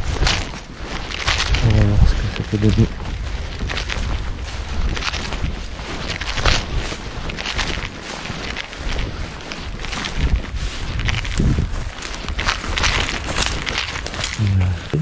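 Footsteps swish through tall wet grass.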